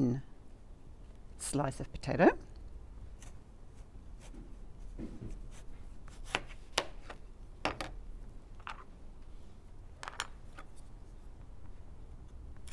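A knife taps sharply on a plastic cutting board.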